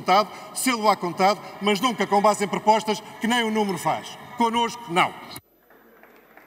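A middle-aged man speaks forcefully and with animation into a microphone in a large hall.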